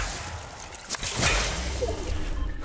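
A burst of ice shatters with a loud whoosh.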